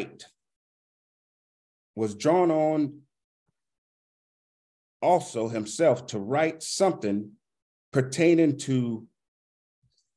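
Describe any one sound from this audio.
A man speaks calmly into a microphone, close by, in short phrases.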